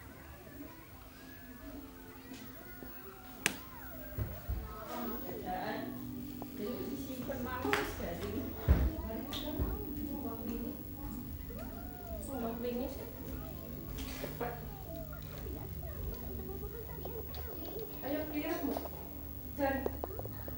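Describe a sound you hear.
A small child babbles and chatters nearby.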